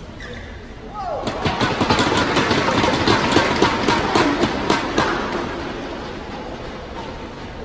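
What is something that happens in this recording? A crowd cheers and applauds loudly, then fades.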